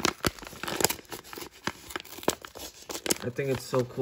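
A paper envelope tears open.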